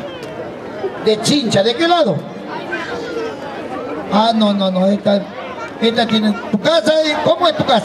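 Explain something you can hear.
A man speaks with animation through a microphone and loudspeaker.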